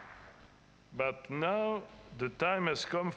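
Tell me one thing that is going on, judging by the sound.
An elderly man chants slowly through a microphone.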